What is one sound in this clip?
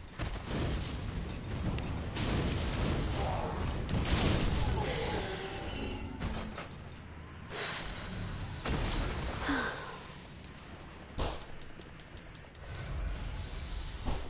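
A fireball whooshes and bursts.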